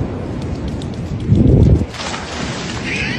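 A dog splashes across shallow water.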